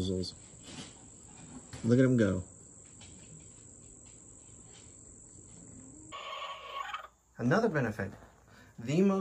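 Hens cluck and squawk loudly nearby.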